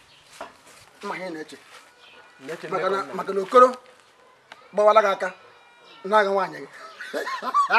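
A middle-aged man speaks nearby with animation.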